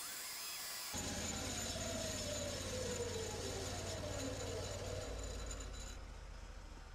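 A band saw hums and cuts through a thick block of wood.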